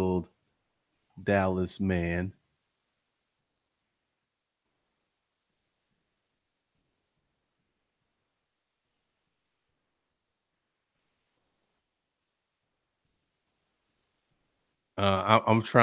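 A man speaks calmly and close into a microphone, with long pauses.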